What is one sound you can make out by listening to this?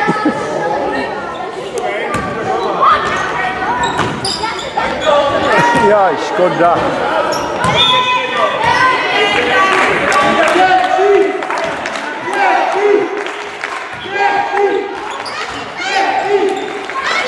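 Children shout and call out throughout a large echoing gym.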